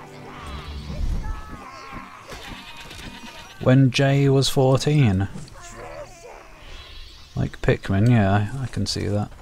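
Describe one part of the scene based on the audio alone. A sword swings and strikes with sharp metallic hits.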